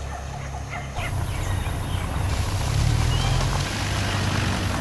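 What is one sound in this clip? Vehicle engines rumble as cars drive slowly along a dirt road.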